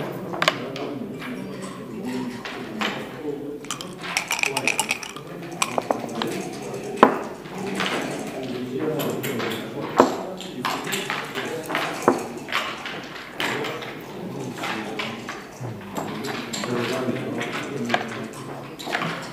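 Plastic checkers click against a wooden board.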